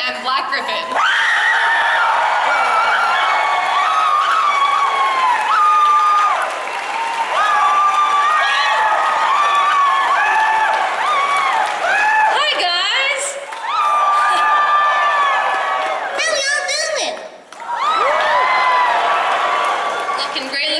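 A young man sings loudly through a microphone in a large hall.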